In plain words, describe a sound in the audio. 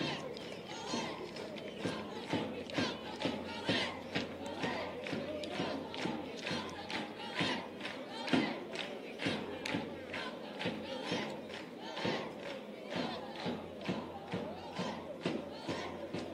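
A large crowd of fans chants loudly outdoors.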